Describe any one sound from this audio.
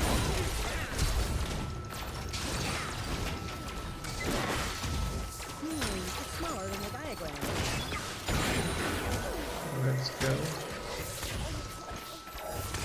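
Game spells and blows whoosh and crack in quick bursts.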